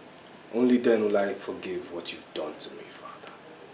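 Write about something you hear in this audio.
An elderly man speaks briefly in a low, serious voice.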